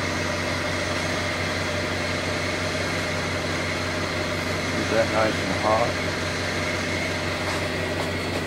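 A gas torch flame hisses steadily.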